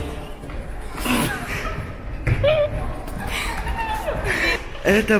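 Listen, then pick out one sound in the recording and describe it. A young man laughs and shouts excitedly close by.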